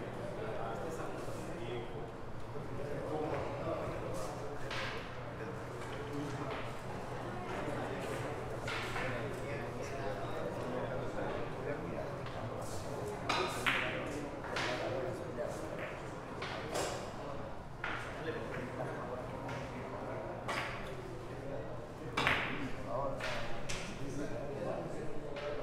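Billiard balls click sharply against each other.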